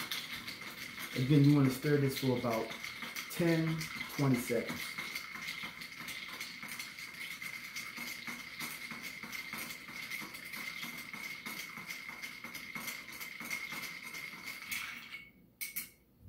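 Ice rattles and clinks as a spoon stirs it in a glass.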